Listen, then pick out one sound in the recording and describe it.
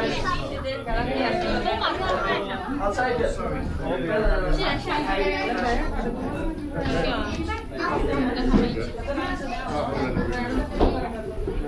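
A crowd of people chatters close by, with many overlapping voices.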